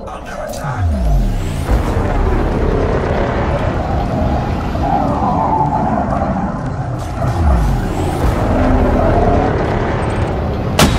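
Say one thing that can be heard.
A laser beam fires with a steady hum.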